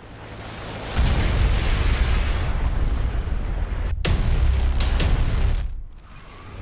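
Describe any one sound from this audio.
A huge explosion booms and rumbles loudly.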